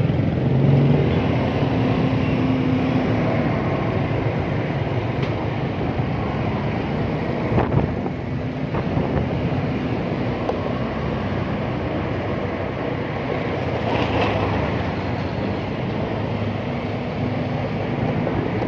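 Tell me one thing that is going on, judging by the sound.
A motor scooter engine hums steadily up close.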